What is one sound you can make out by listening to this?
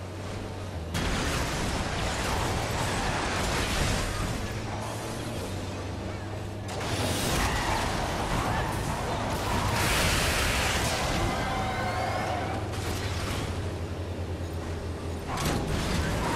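Machine guns fire in bursts in a video game.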